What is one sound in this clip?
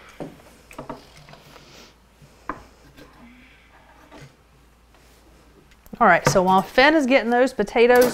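A knife cuts through vegetables on a wooden board.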